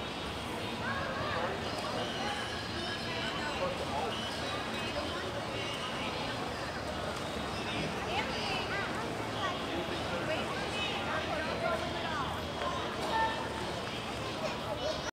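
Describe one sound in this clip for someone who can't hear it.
Water splashes as swimmers play.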